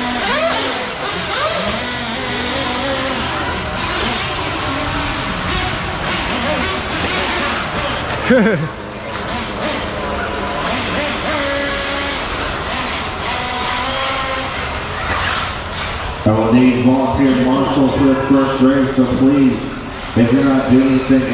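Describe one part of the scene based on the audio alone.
Small electric model cars whine and buzz as they race around a track in a large echoing hall.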